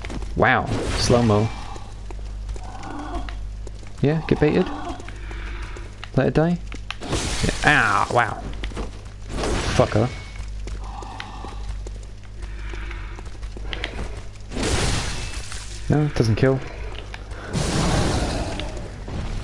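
A blade slashes and strikes with sharp whooshes.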